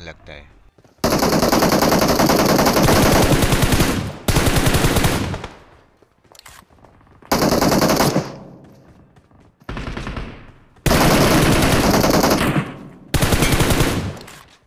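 Rapid gunfire rattles in loud, close bursts.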